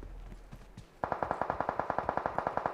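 Quick footsteps patter in a steady rhythm.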